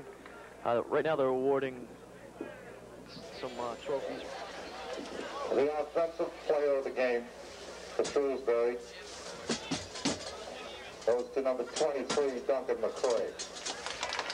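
A man speaks loudly to a crowd outdoors.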